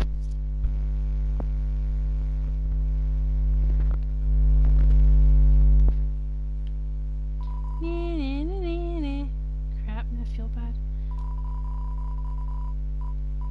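Calm electronic game music plays steadily.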